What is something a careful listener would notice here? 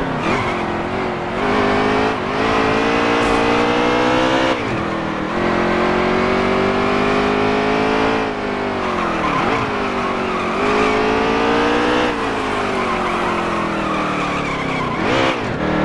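A V8 stock car engine roars at high revs, rising and dropping as it shifts gears.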